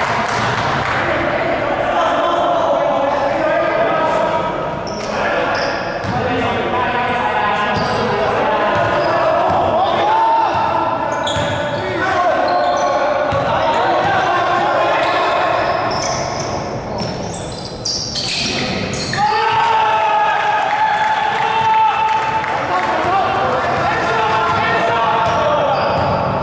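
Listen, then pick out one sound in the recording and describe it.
Young men shout and call out across an echoing indoor hall.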